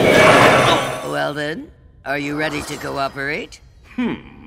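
A man speaks slowly in a deep, eerie voice.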